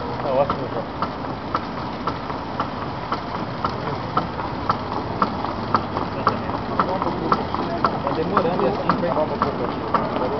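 A machine clicks in an even rhythm.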